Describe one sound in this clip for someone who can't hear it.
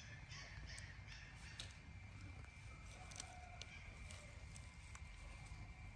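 Grass rustles as a baby monkey climbs through it.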